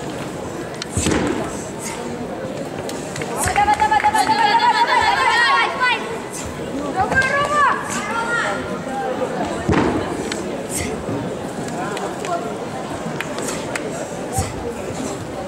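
Feet stamp and thud on a padded floor.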